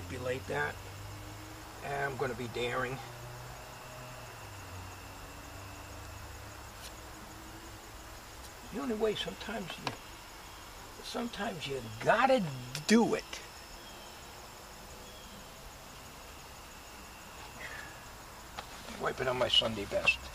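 An elderly man talks casually in short bursts, close by.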